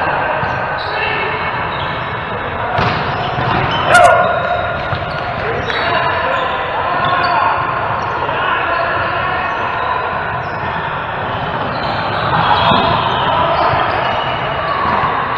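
Adult players talk and call out to each other in a large echoing hall.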